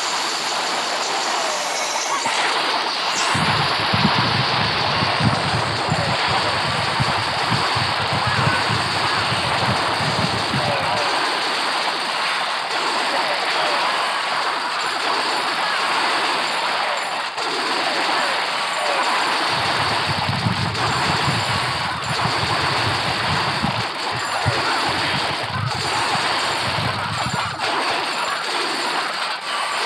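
Game battle sounds of explosions and clashing play continuously.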